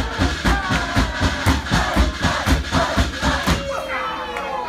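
Hands clap in a steady, quick rhythm.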